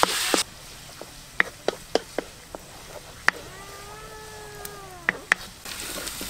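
A wooden spatula scrapes and taps against a metal wok.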